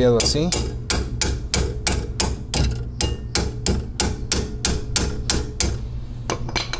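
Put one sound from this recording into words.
A ratcheting wrench clicks quickly and evenly as it turns a bolt.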